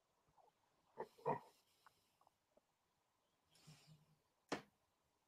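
Thread taps and rustles against a small wooden loom.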